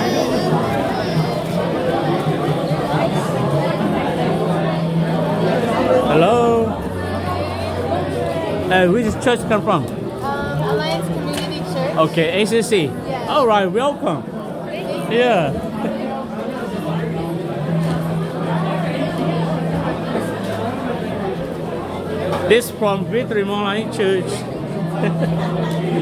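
Many people chatter around a room.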